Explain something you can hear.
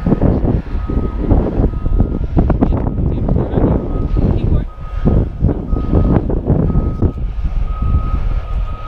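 Strong wind roars and buffets the microphone outdoors.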